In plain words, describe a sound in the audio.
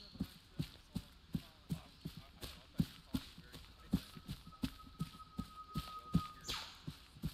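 Quick footsteps rustle through grass.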